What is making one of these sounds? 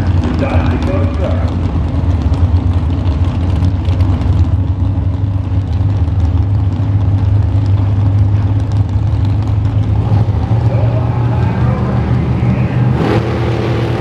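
A drag racing engine idles with a loud, deep rumble.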